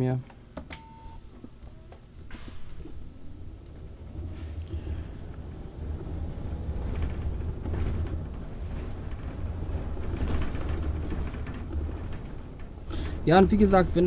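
A bus engine rumbles low as the bus drives along.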